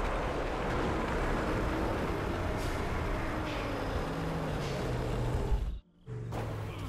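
A truck engine roars loudly.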